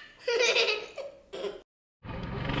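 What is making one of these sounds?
A young boy shouts excitedly close by.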